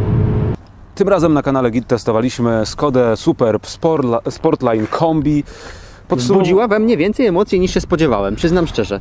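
A young man talks with animation close by, outdoors.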